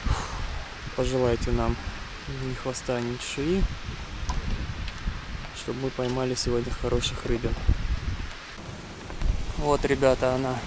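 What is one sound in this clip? A man talks calmly and close, outdoors in wind.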